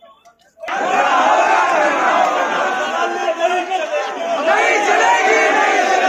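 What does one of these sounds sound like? A crowd of young men shouts and chants loudly close by.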